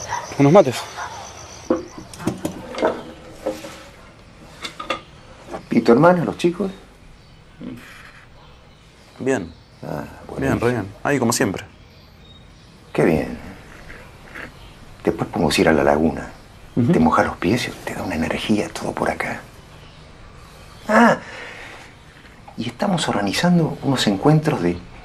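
An elderly man speaks calmly and closely.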